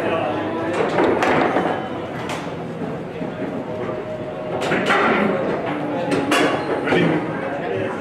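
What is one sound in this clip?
A ball cracks against the figures and walls of a foosball table.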